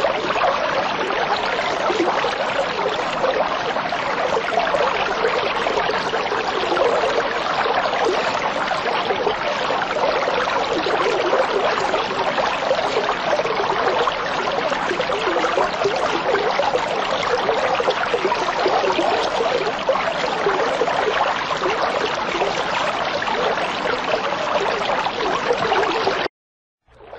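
Air bubbles gurgle and fizz steadily through water.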